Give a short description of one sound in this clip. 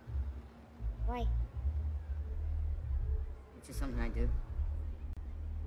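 A young woman answers softly.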